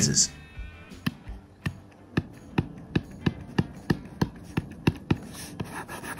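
A pen tip taps sharply on a hard plastic surface.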